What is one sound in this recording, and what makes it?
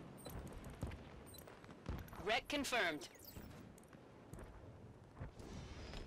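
Short electronic menu clicks sound.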